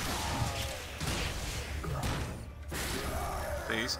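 Explosions burst with heavy booms.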